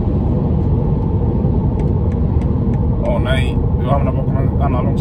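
A car's engine and tyres rumble steadily from inside.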